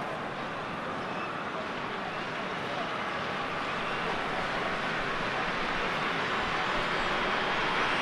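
A large stadium crowd roars and cheers steadily, swelling louder.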